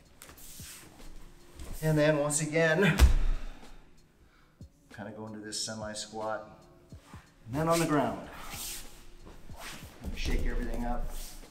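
A man speaks calmly nearby in an echoing room.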